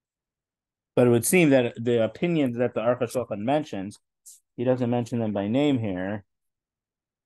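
A man speaks calmly through a microphone in an online call.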